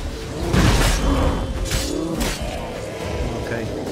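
A sword slashes and clangs.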